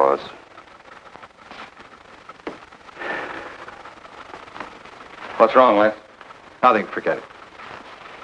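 A man's voice gives short replies between pauses.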